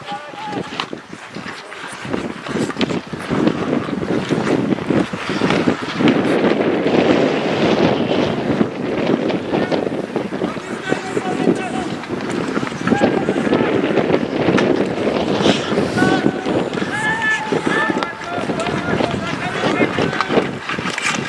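Sticks knock against a ball on the ice.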